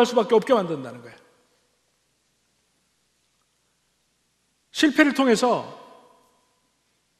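An elderly man speaks calmly through a microphone in a reverberant hall.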